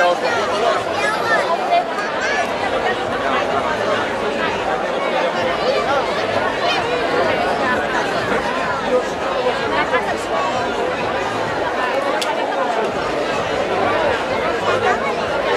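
A large crowd of men and women chatters loudly all around outdoors.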